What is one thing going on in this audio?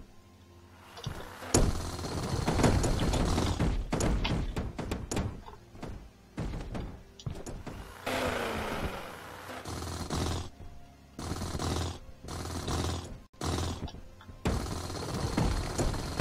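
A power drill grinds into rock in loud bursts.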